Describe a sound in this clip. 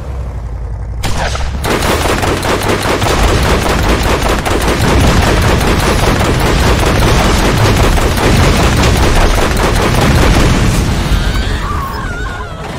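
A mounted gun fires in rapid bursts.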